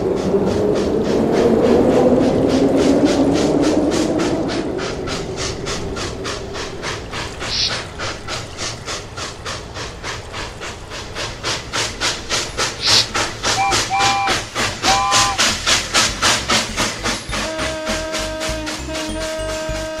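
A toy train clacks steadily along its track.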